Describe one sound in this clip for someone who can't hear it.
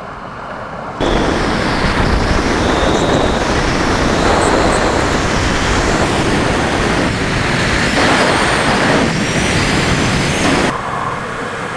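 Wind roars loudly against a microphone.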